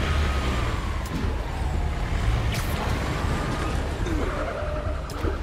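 A web line shoots out with a sharp snap now and then.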